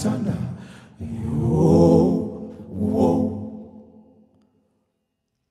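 A group of men sing together in close harmony.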